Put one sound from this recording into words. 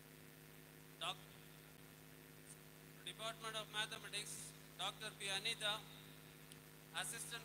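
A man speaks into a microphone, heard over loudspeakers in a large echoing hall.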